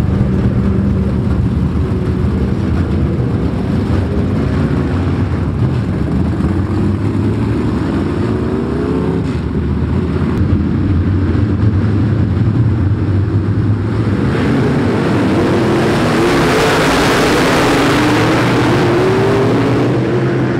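Race car engines rumble and roar loudly throughout.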